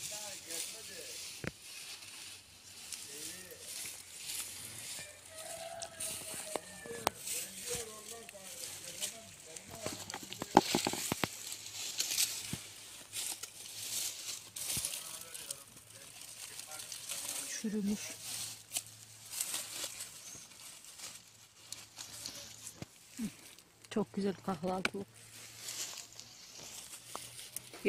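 Leaves rustle and crackle as hands push through dense plants.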